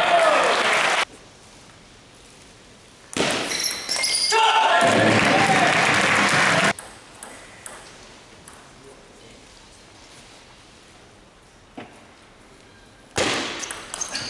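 A table tennis ball clicks back and forth on paddles and table.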